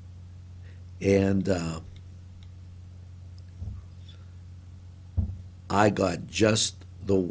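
A middle-aged man speaks into a microphone in short bursts.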